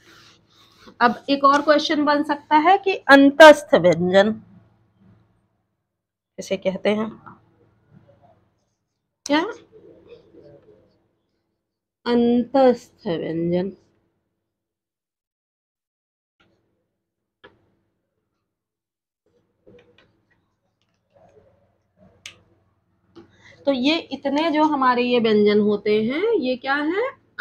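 A woman speaks calmly and clearly, close by, explaining in pauses.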